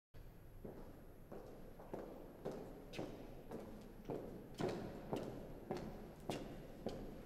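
Footsteps echo on a hard floor in a large empty hall, steady and even.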